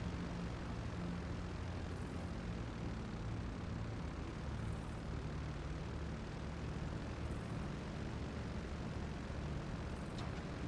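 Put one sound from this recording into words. Propeller engines of a large plane drone steadily with a deep rumble.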